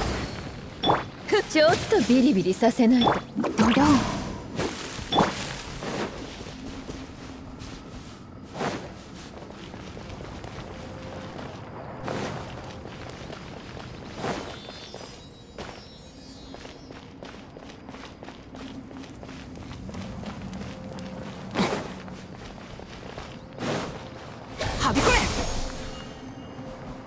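A shimmering magical burst rings out with bright sparkles.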